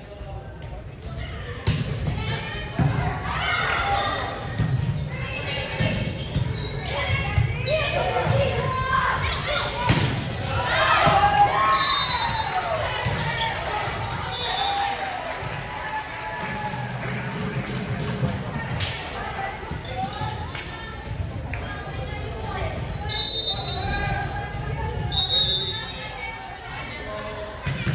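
Young women players call out and cheer in a large echoing gym.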